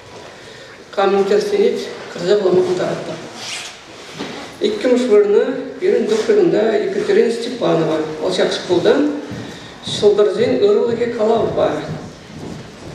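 A young man reads out through a microphone.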